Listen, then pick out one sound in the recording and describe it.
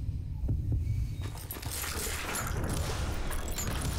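A revolver fires a single loud shot.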